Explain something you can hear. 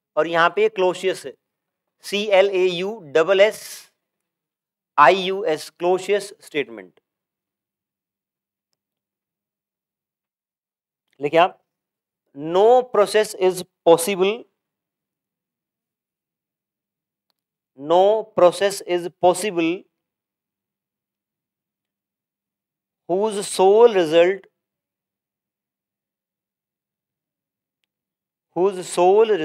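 A young man lectures in bursts into a close microphone, pausing between phrases.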